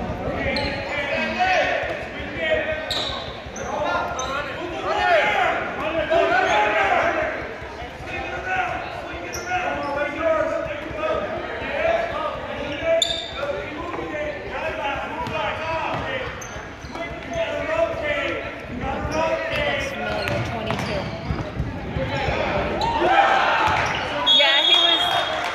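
A crowd of people chatters and calls out in a large echoing gym.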